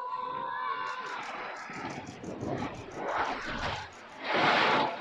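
A crowd of onlookers cheers and claps.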